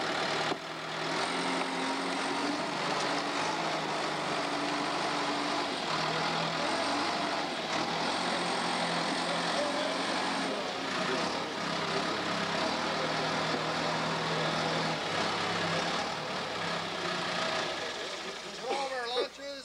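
A heavy diesel engine roars and rumbles close by.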